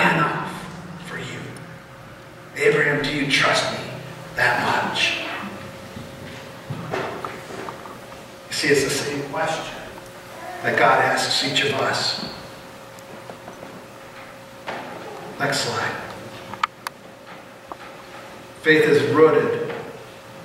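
A man speaks calmly through a microphone in an echoing hall, in short phrases with pauses.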